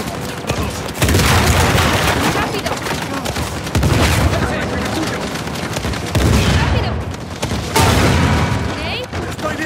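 Loud explosions boom and debris crashes.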